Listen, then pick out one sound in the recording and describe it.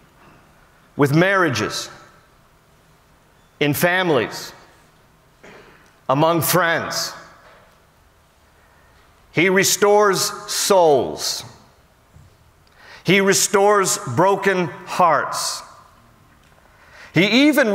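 A middle-aged man speaks with emphasis through a microphone in a large echoing hall, pausing between phrases.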